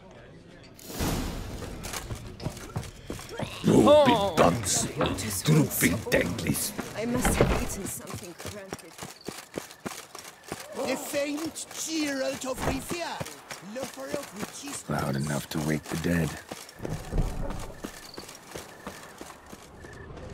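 Footsteps tread on stone and wooden floors.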